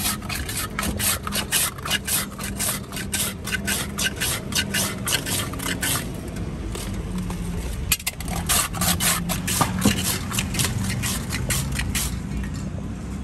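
A metal scraper shaves a block of ice in quick, rasping strokes.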